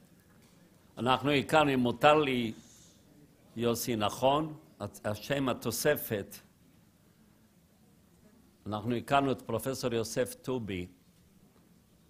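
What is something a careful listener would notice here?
A man speaks calmly into a microphone in a large hall, with pauses between phrases.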